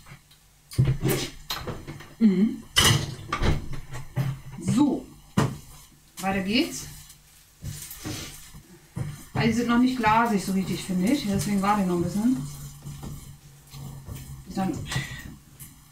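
Utensils knock against a pan.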